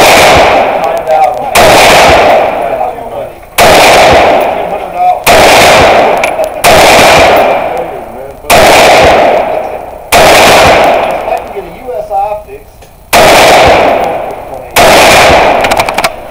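Bullets clang against a steel target.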